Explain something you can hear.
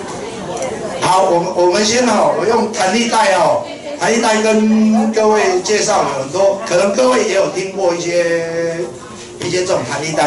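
A man sings loudly through a loudspeaker.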